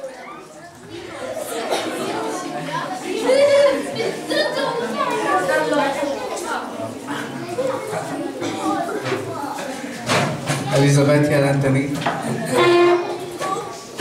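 A young man speaks with animation through a microphone and loudspeaker in an echoing room.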